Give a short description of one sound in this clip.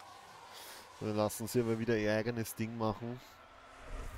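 A young man speaks into a close microphone.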